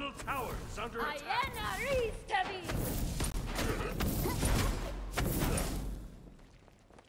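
Magic blasts and weapon hits clash in a fight.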